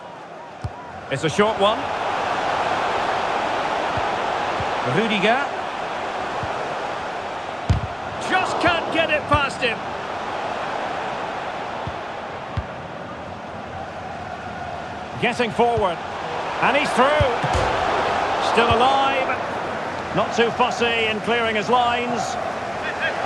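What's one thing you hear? A stadium crowd whistles and cheers in loud bursts.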